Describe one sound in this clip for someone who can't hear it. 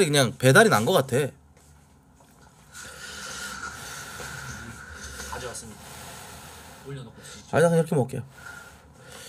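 A young man speaks close to a microphone.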